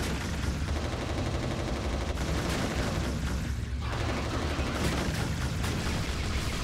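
Gunshots fire in a game.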